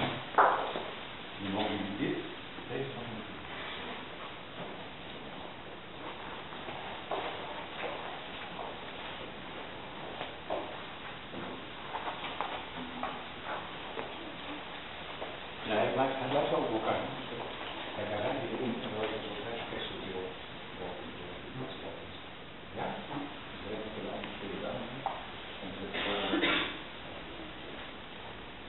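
A woman speaks softly nearby.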